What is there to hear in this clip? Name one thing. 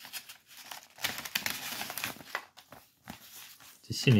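Paper money crinkles and rustles in hands.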